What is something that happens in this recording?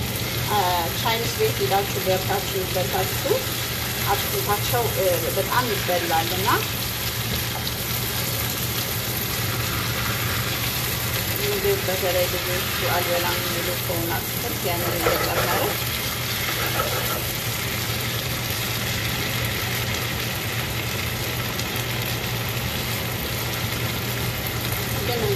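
A spatula stirs and scrapes food in a pan.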